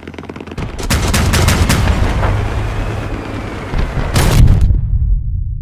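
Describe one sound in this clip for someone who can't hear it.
A vehicle engine rumbles.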